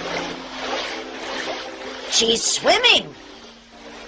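Water splashes as a child swims.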